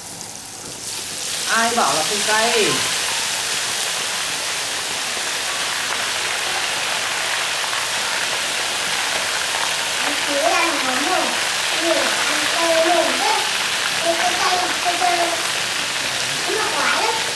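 Hot oil sizzles loudly as fish fries.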